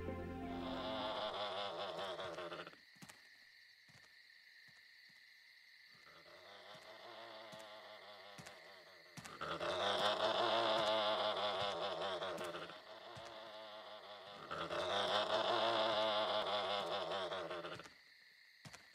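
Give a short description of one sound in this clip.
A large creature honks loudly in long, repeated calls.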